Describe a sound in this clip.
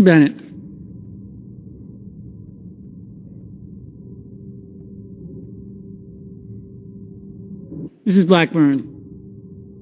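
A man calls out briefly through a microphone in a large echoing hall.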